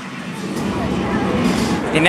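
A crowd murmurs on a busy street.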